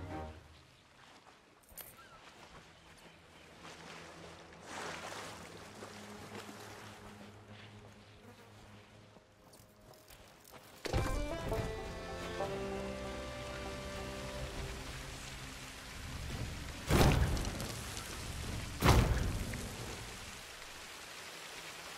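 Gentle waves lap on a sandy shore.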